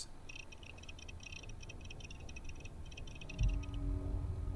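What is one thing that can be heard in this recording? An electronic device chirps rapidly with short beeps.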